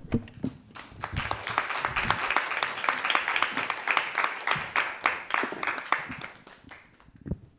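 A small group applauds in an echoing hall.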